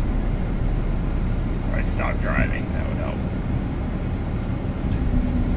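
A low engine rumble drones steadily inside a vehicle.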